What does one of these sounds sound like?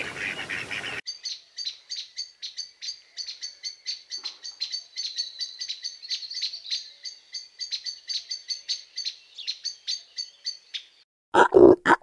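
A small bird chirps rapidly and sharply, close by.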